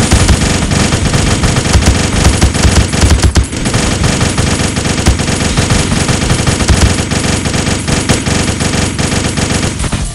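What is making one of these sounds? Rapid game gunshots pop and crackle.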